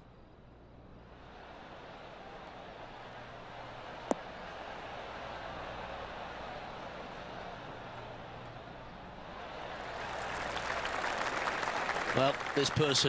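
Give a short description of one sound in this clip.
A crowd cheers and applauds, swelling louder.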